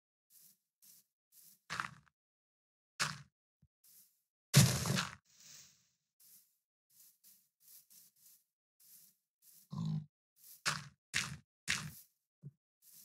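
Dirt and leaves crunch as blocks are dug and broken.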